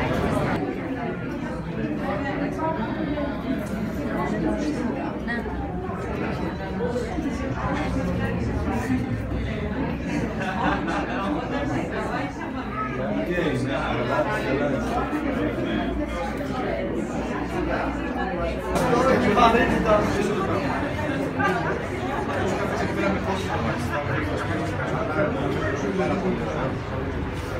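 A crowd of adults chatters all around.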